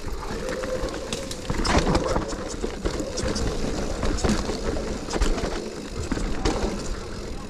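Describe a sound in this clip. Bicycle tyres rumble and crunch over a bumpy dirt trail.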